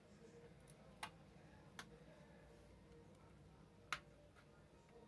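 Plastic clips click softly as a phone case is pried open.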